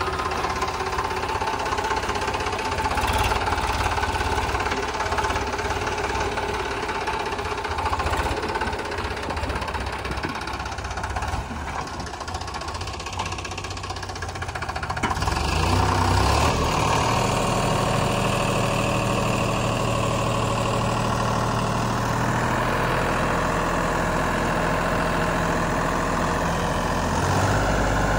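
A tractor engine chugs steadily close by.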